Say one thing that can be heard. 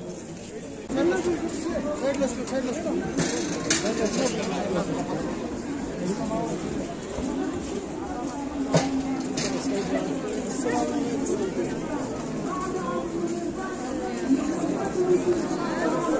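A large crowd chatters and calls out outdoors.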